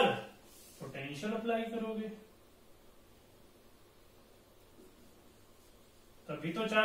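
A young man speaks calmly, explaining as if teaching.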